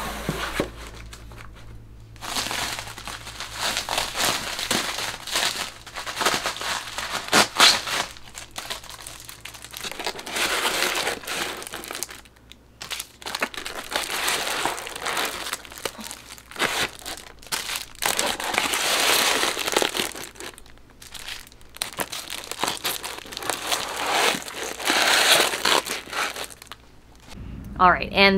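Plastic wrappers crinkle and rustle as notebooks are handled.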